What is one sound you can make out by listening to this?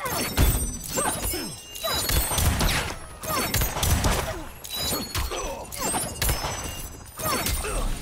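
Magic energy blasts whoosh and crackle.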